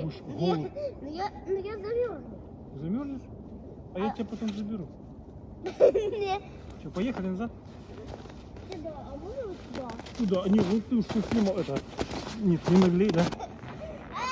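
An elderly man talks to a child close by.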